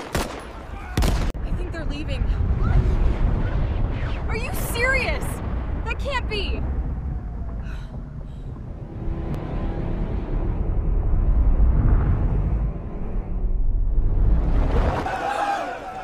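A deep explosion booms and rumbles.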